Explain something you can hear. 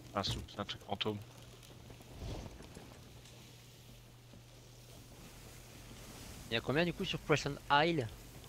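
Waves splash against the hull of a sailing ship.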